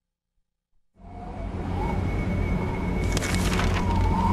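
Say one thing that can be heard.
A sheet of newspaper flutters in the wind.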